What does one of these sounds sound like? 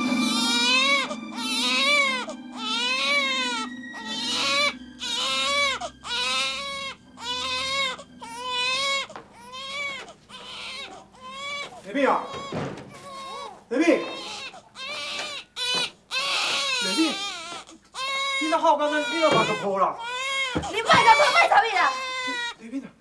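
A baby cries loudly and wails nearby.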